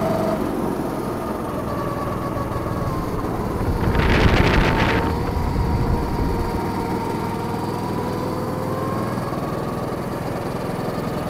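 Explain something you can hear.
A go-kart engine drones steadily close by, its pitch rising and falling.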